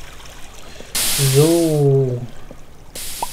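A man speaks briefly, close to a microphone.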